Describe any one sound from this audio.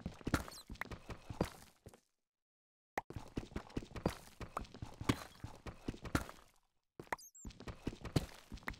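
A pickaxe chips repeatedly at stone.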